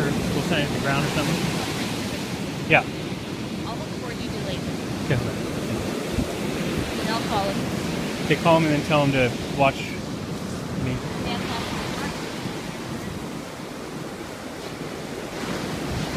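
Waves break and wash steadily onto a beach outdoors.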